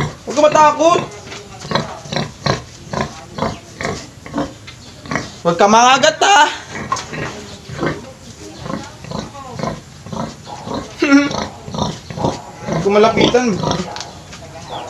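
A pig squeals loudly.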